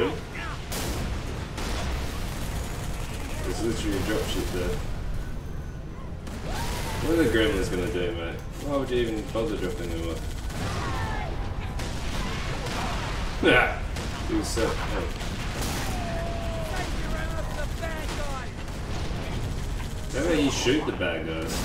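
Gunfire from a vehicle turret rattles in quick bursts.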